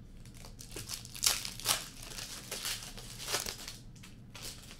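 Plastic-wrapped card packs rustle and crinkle as they are torn open.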